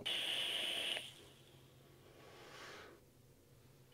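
A man exhales a long breath of vapour.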